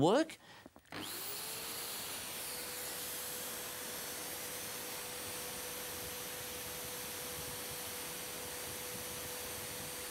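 An electric drill spins up and whirs steadily.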